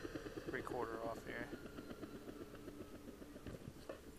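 A helicopter's rotor whirs steadily overhead.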